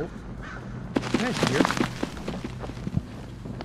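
A young man shouts in alarm into a close microphone.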